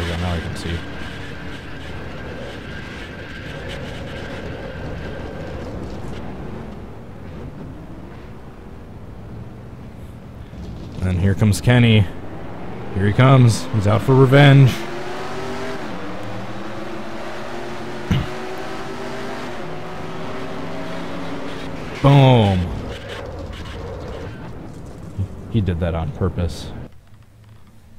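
Racing car engines roar steadily.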